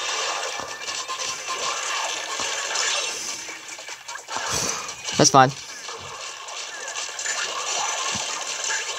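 Busy battle sound effects play through a small, tinny speaker.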